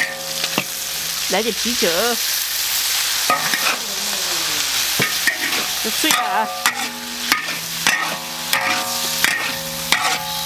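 Food sizzles and hisses loudly in a hot wok.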